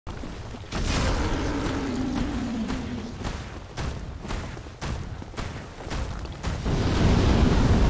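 Armoured footsteps clank on stone in a steady walking rhythm.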